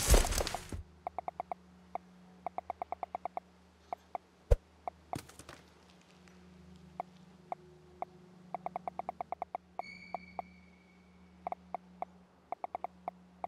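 Soft interface clicks tick in quick bursts as items are picked.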